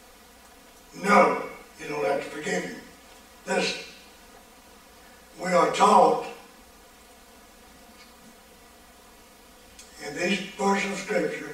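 An elderly man speaks slowly and calmly through a microphone, with pauses.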